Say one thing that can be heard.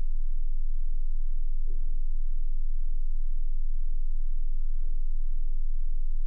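A laptop lid is lifted open with a soft click.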